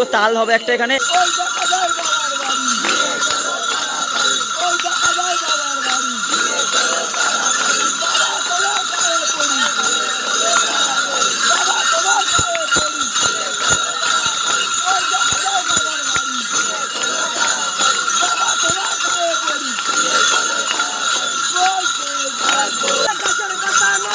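A group of men chant loudly together close by.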